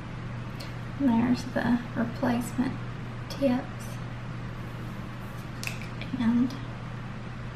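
A woman speaks calmly close to the microphone.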